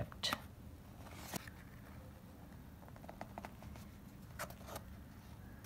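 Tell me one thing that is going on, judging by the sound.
Cardboard rustles and taps as fingers handle a small box.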